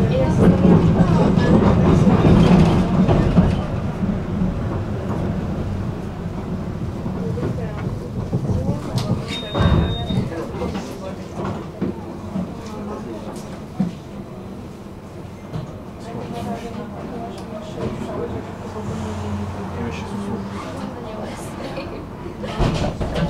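Traffic rumbles steadily in the distance.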